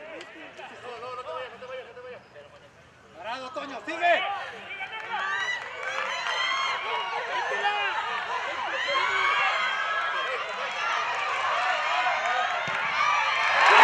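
A crowd of spectators shouts and cheers outdoors, growing louder.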